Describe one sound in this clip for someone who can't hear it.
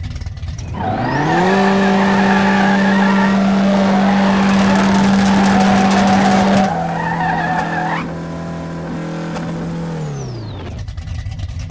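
A car engine revs hard and holds a high roar.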